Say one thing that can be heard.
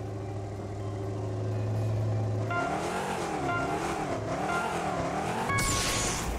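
Engines idle and rev up and down in a rumbling drone.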